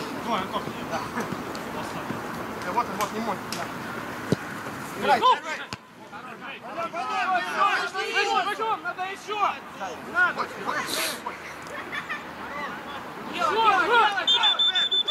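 Men shout to each other across an open field outdoors.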